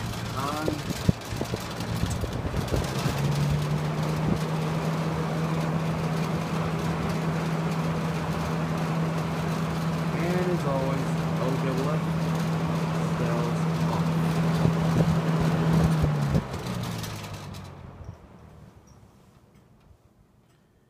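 A box fan hums and whooshes steadily, then slowly winds down and falls quiet.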